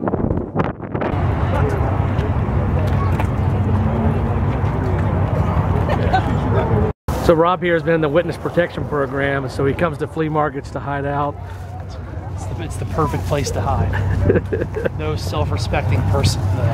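A crowd murmurs outdoors at a busy market.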